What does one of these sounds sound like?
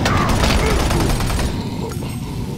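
A gun fires with a loud, roaring blast.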